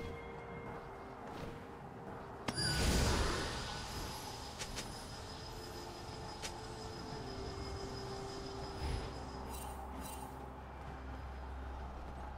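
Video game sound effects chime and whoosh.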